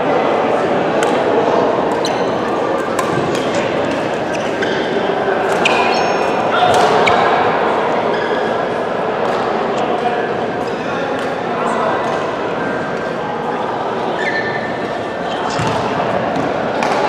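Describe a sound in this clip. Rackets hit shuttlecocks with sharp pops in a large echoing hall.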